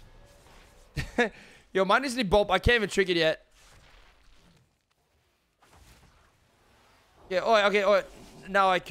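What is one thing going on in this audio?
A young man talks with animation close to a microphone.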